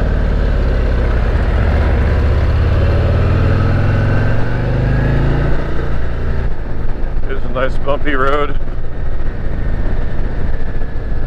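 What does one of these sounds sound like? A motorcycle engine rumbles steadily up close, its pitch rising slightly and then easing off.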